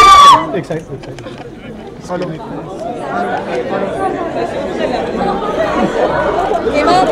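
A crowd chatters and cheers in a large hall.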